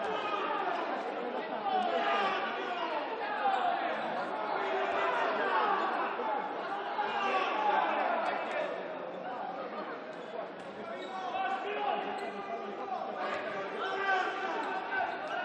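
Spectators murmur and call out in a large echoing hall.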